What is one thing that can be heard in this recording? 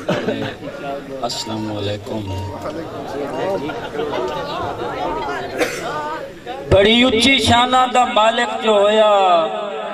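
A young man recites poetry with feeling into a microphone, heard through loudspeakers.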